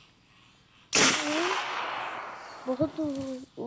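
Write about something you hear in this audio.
A rifle fires a single loud shot that rings out and fades.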